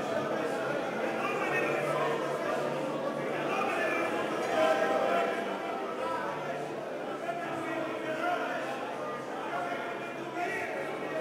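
A large crowd of men and women sings together in a spacious echoing hall.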